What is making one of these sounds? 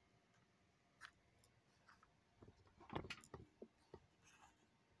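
Paper pages rustle and flap as a notebook is handled.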